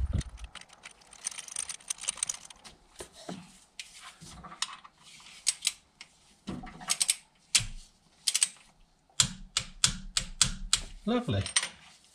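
Metal tools click and clink against engine parts.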